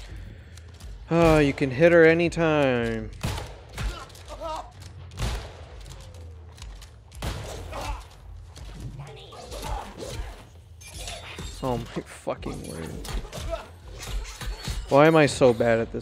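Blades strike and thud in quick blows during a fight.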